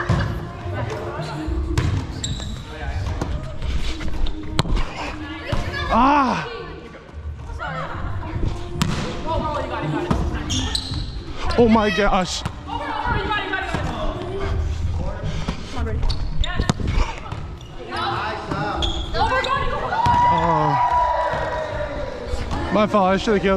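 Men and women call out and shout to each other in a large echoing hall.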